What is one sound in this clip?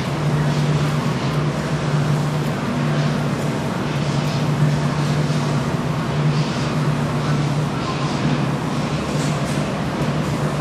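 A horn loudspeaker blares a low, buzzing alarm tone in repeated pulses.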